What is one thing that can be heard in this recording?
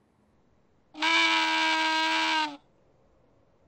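A toy horn honks with a long, steady toot.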